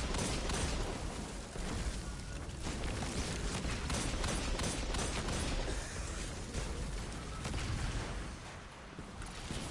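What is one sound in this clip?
Gunfire from an energy weapon rapidly cracks and booms.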